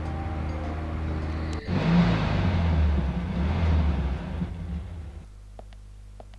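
A car engine hums and rumbles.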